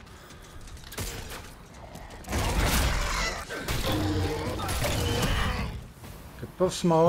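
Heavy gunfire and impacts burst out in a loud fight.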